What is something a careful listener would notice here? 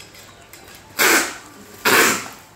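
Adhesive tape rips loudly off a roll.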